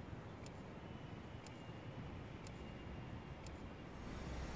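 A countdown timer ticks once each second.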